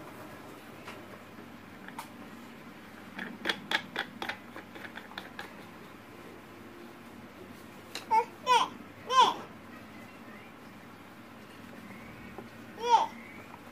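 Plastic parts click and rattle as a fan hub is unscrewed by hand.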